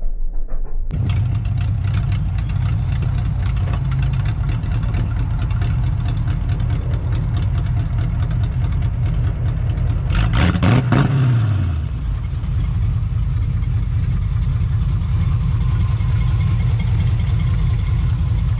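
A car engine idles with a deep, rumbling exhaust.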